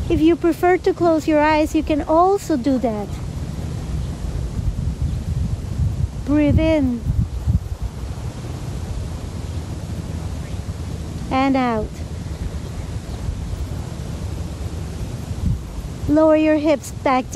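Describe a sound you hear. A woman speaks calmly, giving slow instructions.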